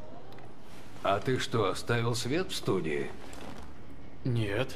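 An elderly man speaks calmly and quietly.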